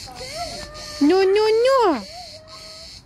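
A young girl squeals loudly.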